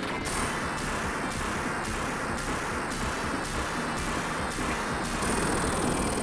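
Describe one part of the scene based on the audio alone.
Rapid explosions pop and boom in a video game.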